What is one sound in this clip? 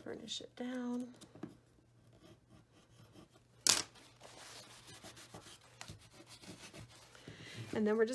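A tool rubs firmly along a paper crease.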